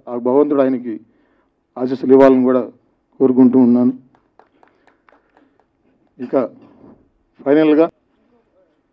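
A man speaks through a microphone in a loud, amplified voice.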